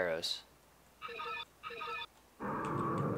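Short electronic menu beeps chime twice.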